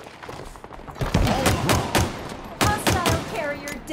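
Rapid gunfire rattles in short bursts.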